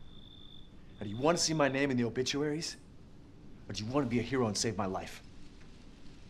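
A man speaks nearby in a tense, pleading voice.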